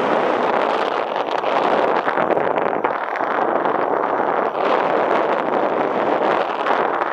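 Strong wind rushes loudly past outdoors.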